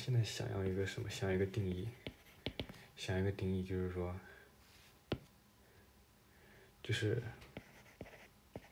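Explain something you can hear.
A stylus taps and scratches on a glass surface.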